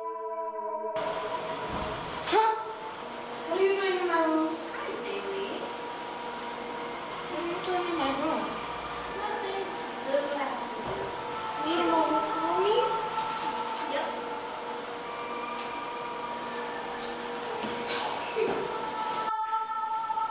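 A teenage girl speaks nervously close by.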